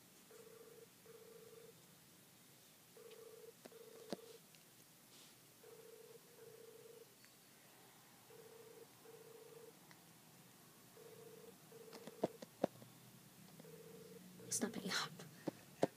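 A phone plays a repeating ringing tone quietly.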